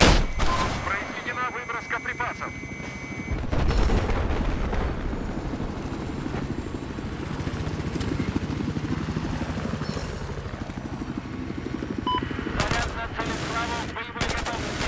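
A helicopter's rotor thumps steadily throughout.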